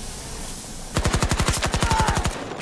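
A rifle fires in a fast, steady stream of shots.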